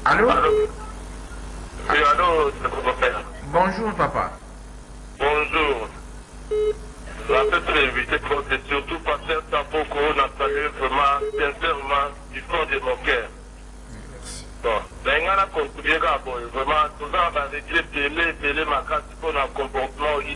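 A man speaks with animation into a microphone, heard close.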